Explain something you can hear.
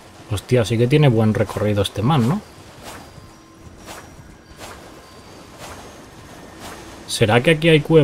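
A horse splashes through shallow water at a gallop.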